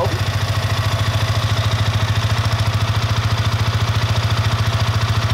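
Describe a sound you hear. A motorcycle engine idles with a steady, fast, low rumble close by.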